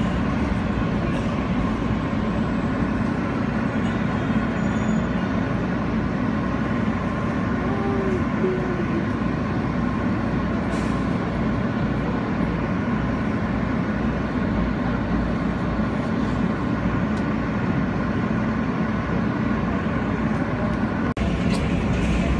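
A subway train rumbles and roars loudly past at speed.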